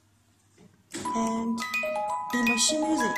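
A wind-up music box plays a tinkling melody.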